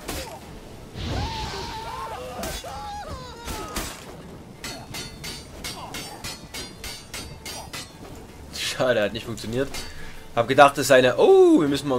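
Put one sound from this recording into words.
A man grunts and shouts while fighting.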